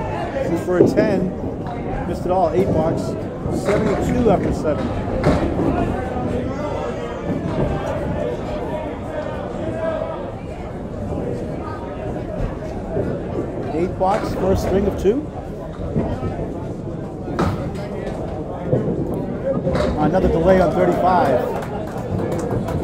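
Several men talk and chatter nearby in an echoing hall.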